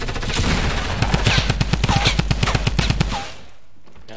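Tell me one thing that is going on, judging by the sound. Video game gunfire fires in a rapid burst.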